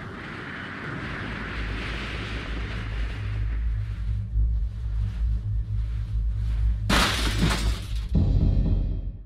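A deep mechanical rumble grows as a lift moves up a shaft.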